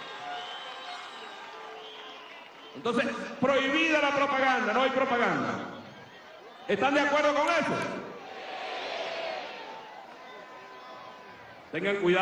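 A crowd cheers and murmurs in the background.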